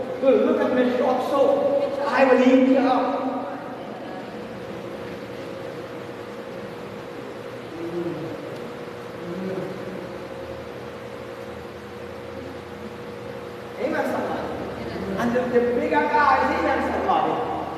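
A man speaks with animation into a microphone through a loudspeaker in a large echoing hall.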